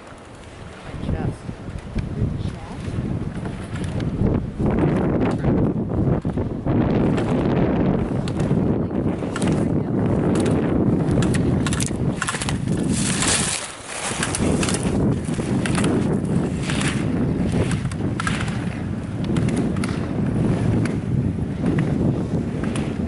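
Skis scrape and hiss across hard snow in quick turns.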